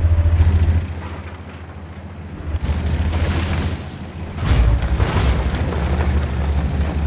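A tank engine rumbles deeply as the tank drives.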